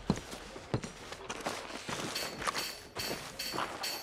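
Boots squelch through mud.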